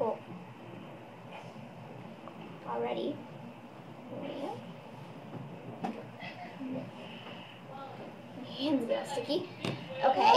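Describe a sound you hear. A small boy talks nearby in a high voice.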